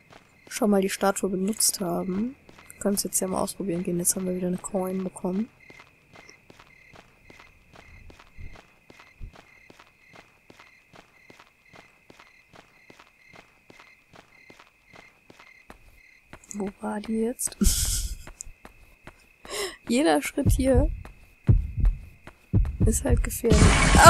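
Small footsteps patter steadily.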